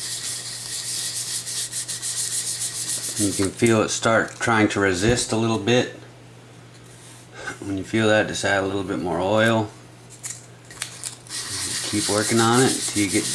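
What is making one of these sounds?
A sanding block rubs back and forth over a wet, oiled wooden gunstock.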